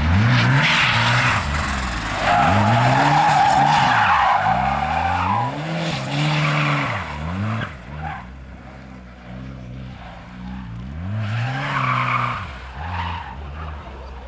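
Tyres squeal loudly on the road.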